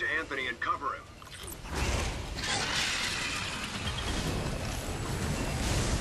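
An electric beam crackles and zaps.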